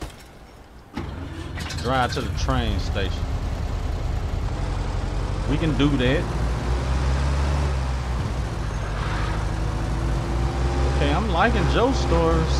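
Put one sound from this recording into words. A car engine rumbles as a car drives along.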